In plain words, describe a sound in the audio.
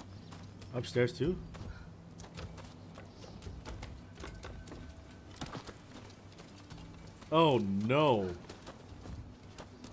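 Footsteps patter quickly on stone and wooden boards.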